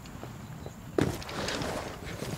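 A body lands hard and slides down a grassy slope.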